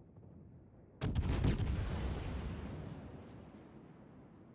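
A warship's big guns fire a loud, booming salvo that rumbles away.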